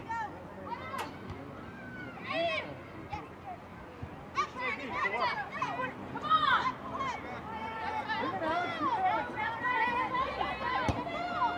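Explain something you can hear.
A soccer ball thuds as a player kicks it.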